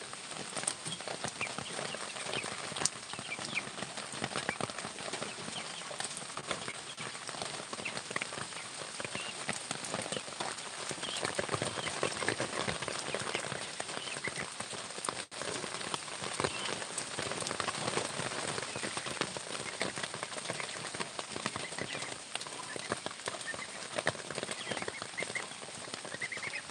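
Rabbits rustle and nibble on leaves and grass close by.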